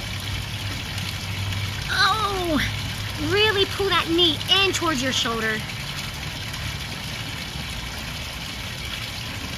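Water trickles steadily from a small fountain.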